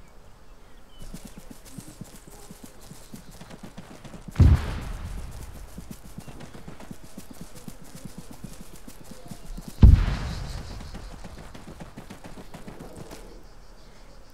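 Footsteps rustle through dry grass at a steady walking pace.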